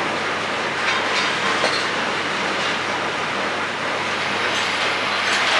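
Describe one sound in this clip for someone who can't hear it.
A machining tool whirs.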